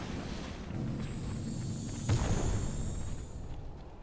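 Game spells burst and clash in a fight.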